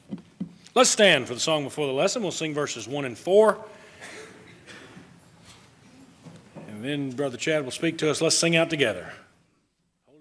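A man speaks steadily through a microphone in a large echoing hall.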